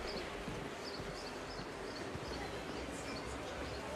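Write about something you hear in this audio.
A crowd murmurs nearby.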